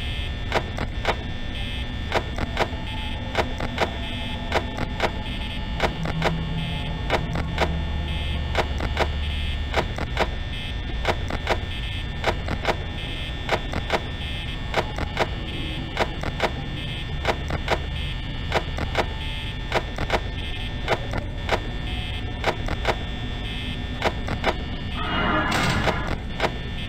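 An electric fan whirs and clicks steadily.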